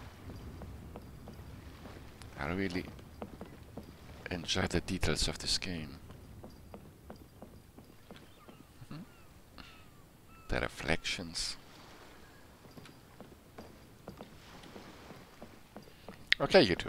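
Quick footsteps patter on wooden boards.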